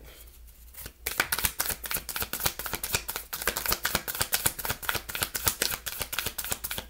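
Playing cards riffle and flutter quickly as they are shuffled close by.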